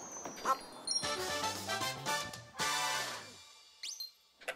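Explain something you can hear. A short triumphant game jingle plays.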